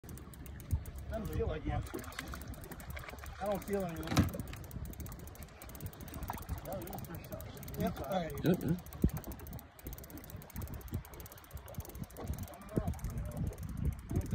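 Water splashes against a boat hull.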